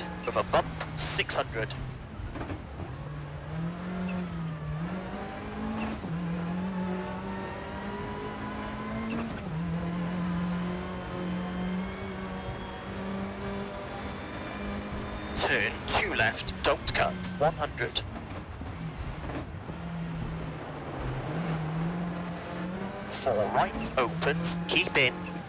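A rally car engine drones and revs up and down through the gears.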